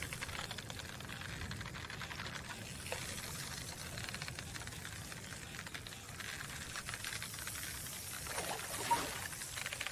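A hooked fish splashes on the water's surface.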